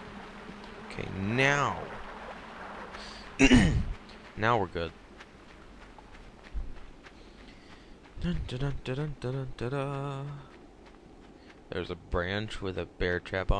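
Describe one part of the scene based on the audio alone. A young man talks with animation into a headset microphone, close up.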